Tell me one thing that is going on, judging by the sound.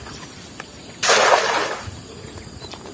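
A cast net splashes down onto water.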